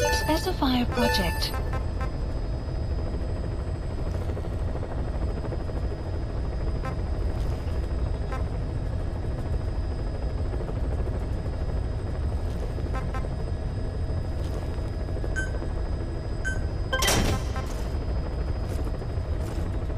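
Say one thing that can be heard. Short electronic blips sound as menu items are selected.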